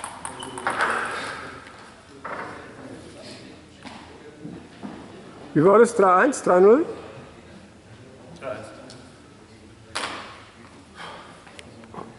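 A table tennis ball bounces on a table in an echoing hall.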